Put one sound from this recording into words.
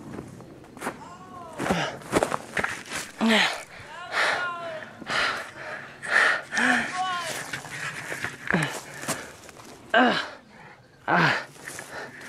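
Dry grass rustles and crackles close by.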